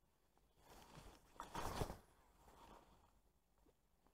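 A fishing rod swishes through the air in a cast.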